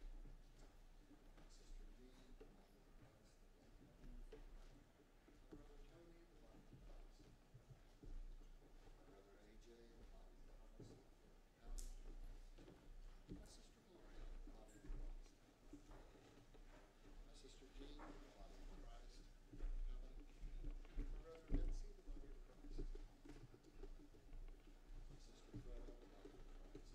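A man speaks quietly at a distance in a large echoing room.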